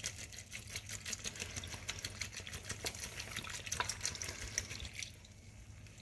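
Liquid pours and splashes into a pot of vegetables.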